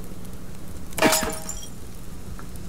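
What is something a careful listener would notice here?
A heavy wooden shutter slams shut with a ringing clang.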